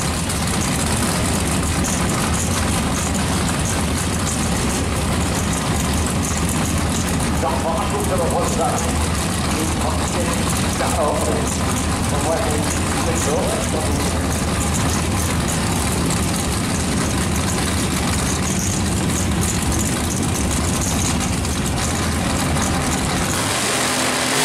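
Loud drag racing engines idle with a deep, rough rumble.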